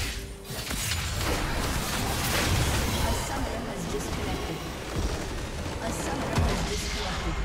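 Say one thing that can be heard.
Fantasy battle sound effects crackle, zap and clash.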